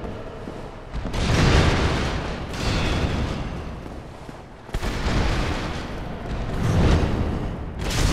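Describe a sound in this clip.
A huge beast crashes down, smashing wooden benches with loud rumbling booms.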